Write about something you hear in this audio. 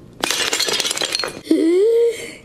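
Pottery crashes and shatters on the floor.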